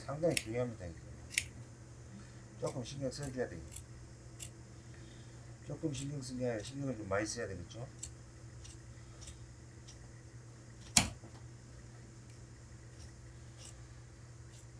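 Scissors snip through thick cloth.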